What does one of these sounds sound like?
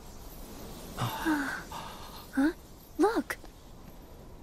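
A young woman calls out with animation.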